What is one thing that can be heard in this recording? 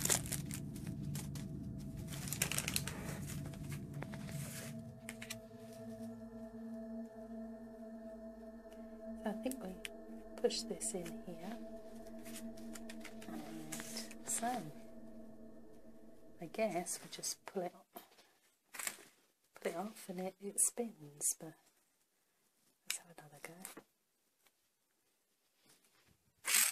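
Plastic pieces click and rattle as hands handle a small toy.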